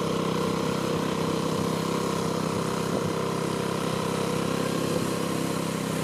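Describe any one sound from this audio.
A small engine chugs steadily close by.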